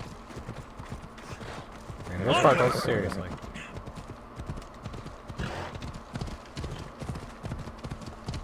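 Horse hooves thud rhythmically on a dirt path.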